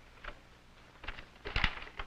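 Paper rustles as pages are turned.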